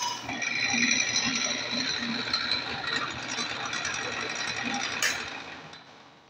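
A drill press whirs as its bit bores into wood.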